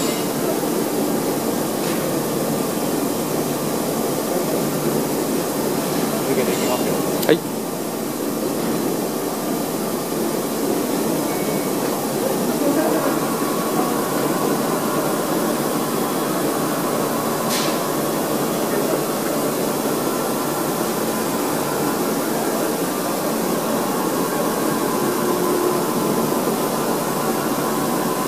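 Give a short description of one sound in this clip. Heavy machinery hums steadily.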